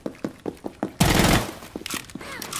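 A rifle fires a short, loud burst.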